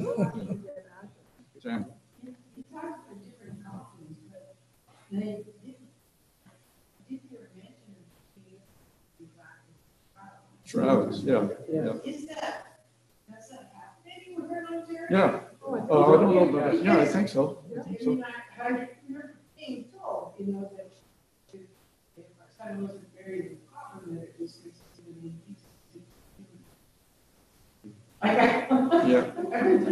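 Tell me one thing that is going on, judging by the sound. An elderly man speaks calmly to a room, heard through a distant microphone with some echo.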